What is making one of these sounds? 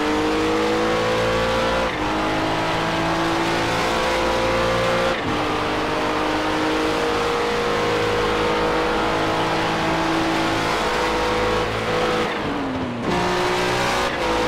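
A racing car engine roars at high revs, dropping in pitch at each gear change.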